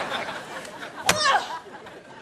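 A golf club strikes a ball.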